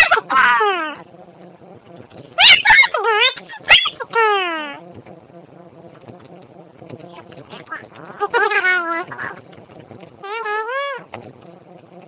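Young girls sing in high, loud bursts close to a microphone.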